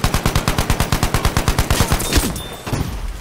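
A machine gun fires a rapid burst of shots.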